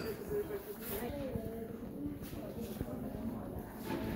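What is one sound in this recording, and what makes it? Adult visitors talk quietly nearby.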